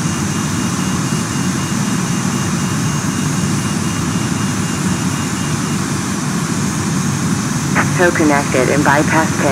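An idling aircraft engine drones steadily nearby.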